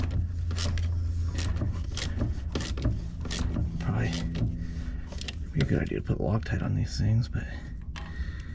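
A socket wrench ratchets with light metal clicks.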